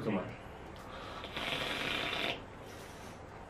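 A young man inhales sharply from a vape.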